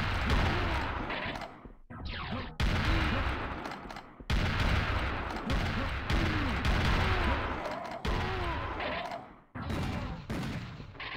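Gunshots and explosions boom repeatedly.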